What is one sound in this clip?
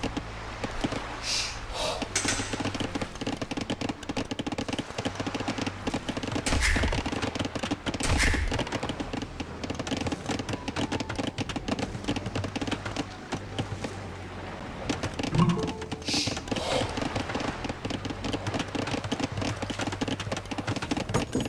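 Axes chop wood in quick, steady knocks.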